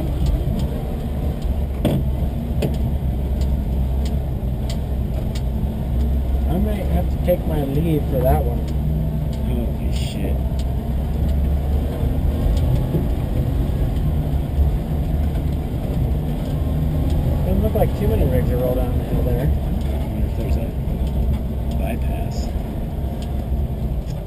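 A vehicle's body rattles and knocks over bumps.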